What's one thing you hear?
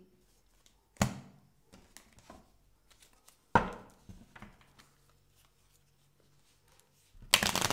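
Playing cards are shuffled and riffled.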